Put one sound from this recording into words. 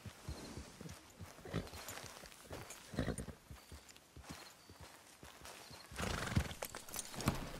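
A horse's hooves thud on grass as it walks.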